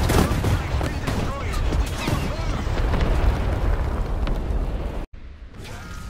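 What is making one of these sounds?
A tank explodes with a loud blast.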